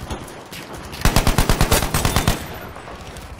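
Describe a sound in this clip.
A rifle fires a rapid burst of shots at close range.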